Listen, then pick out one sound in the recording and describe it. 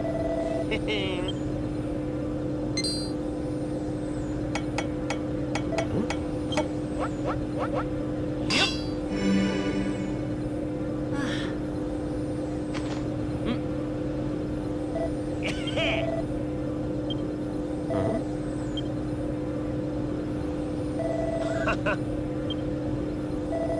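A hovering craft's engine hums steadily.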